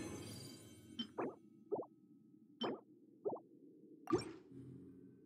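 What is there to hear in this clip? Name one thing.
Menu clicks tick sharply several times.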